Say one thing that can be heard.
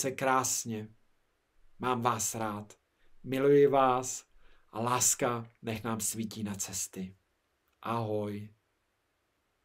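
A man speaks warmly and cheerfully close to a microphone.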